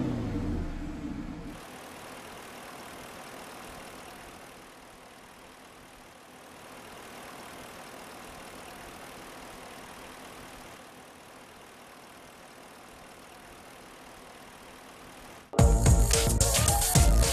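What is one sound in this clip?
A vehicle engine rumbles and roars.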